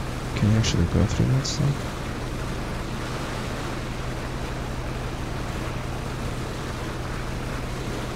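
A boat motor drones steadily.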